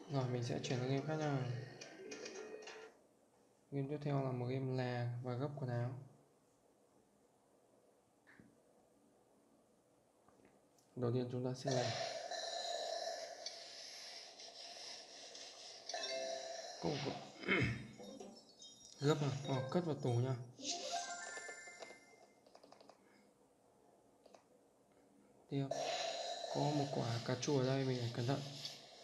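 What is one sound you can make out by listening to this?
A young man talks calmly, close to a microphone.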